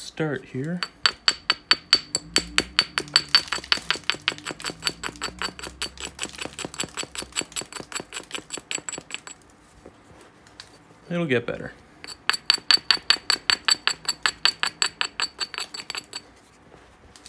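A stone rapidly scrapes and clicks against the edge of a glassy rock.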